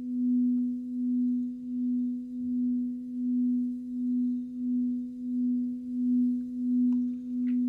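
A singing bowl hums with a steady, pulsing low tone as a mallet is rubbed around its rim.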